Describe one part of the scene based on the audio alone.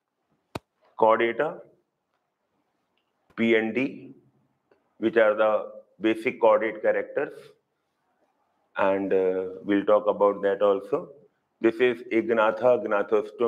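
A middle-aged man lectures calmly and clearly into a microphone.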